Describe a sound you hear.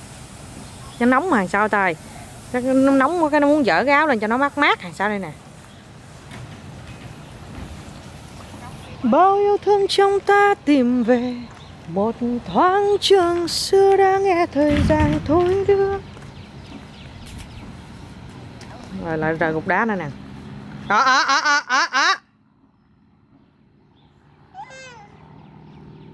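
A toddler girl babbles and squeals close by.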